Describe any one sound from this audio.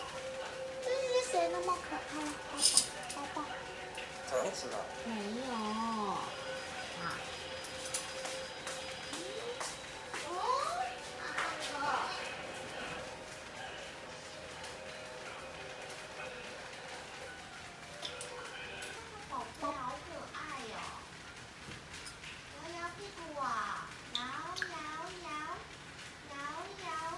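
A parrot chatters and whistles in varied tones.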